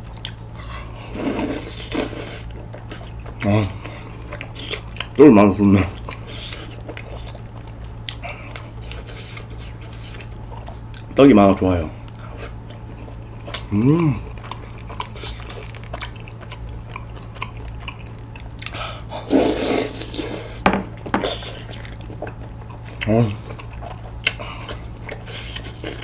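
A man chews and slurps food close to a microphone.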